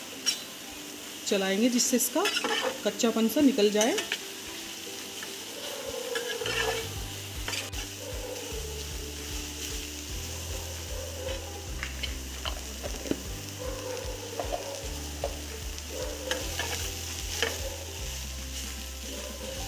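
A metal spatula scrapes and clatters against a frying pan.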